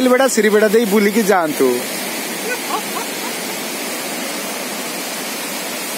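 A swollen river of floodwater rushes past.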